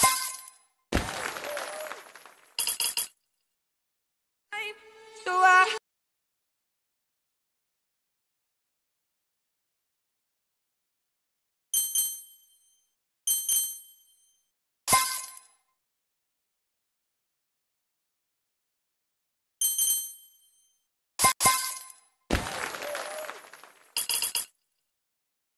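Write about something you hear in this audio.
A cheerful jingle with a rush of sound plays when a level is completed.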